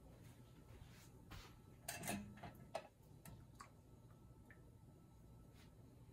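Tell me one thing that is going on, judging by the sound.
Metal jar tongs clink against glass jars.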